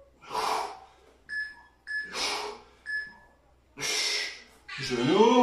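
A man breathes out hard in short bursts.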